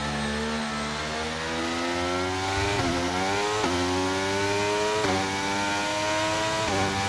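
A racing car engine revs higher and higher, dropping briefly at each gear shift.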